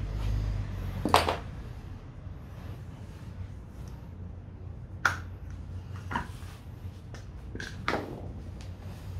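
Metal clinks sharply as a wrench and grinder disc are handled.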